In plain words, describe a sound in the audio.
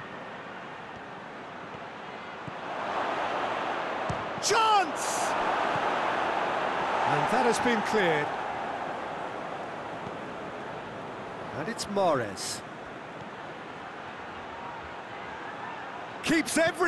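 A stadium crowd roars and cheers, swelling and then fading.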